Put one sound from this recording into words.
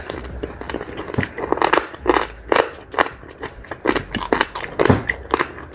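Fingers pick at food with soft sticky clicks.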